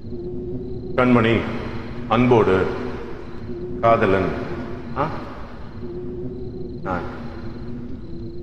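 A man sings into a close microphone.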